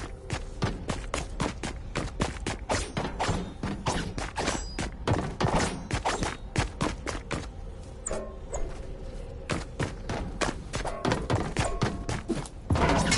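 A pickaxe strikes again and again in quick, sharp knocks.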